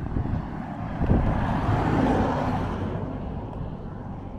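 A van whooshes past.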